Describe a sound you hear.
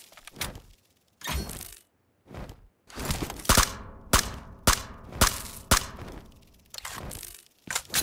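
A game character scrambles noisily up a stone wall.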